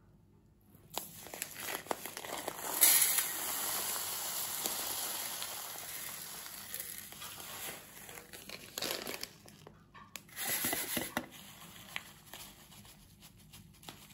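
A bag of crumbs rustles and crinkles.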